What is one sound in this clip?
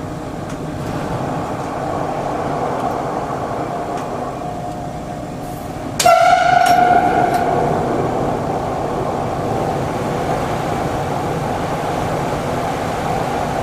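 A train roars louder inside a tunnel.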